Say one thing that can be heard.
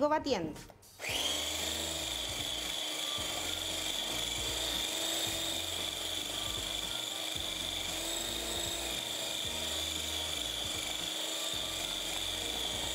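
A hand blender whirs steadily.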